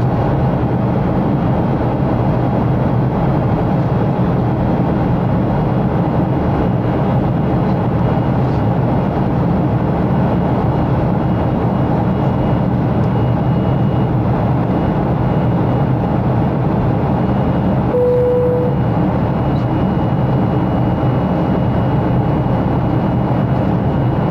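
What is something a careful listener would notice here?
A jet engine roars steadily in the cabin of an airliner in flight.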